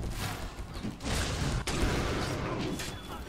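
Weapons clash and strike in a game fight.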